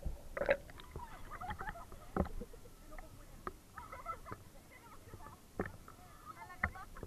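Young women chatter and laugh close by.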